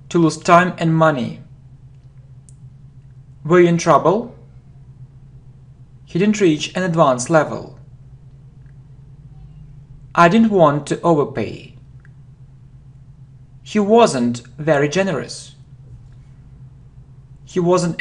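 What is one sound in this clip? A young man reads out short phrases clearly and slowly into a close microphone, with pauses between them.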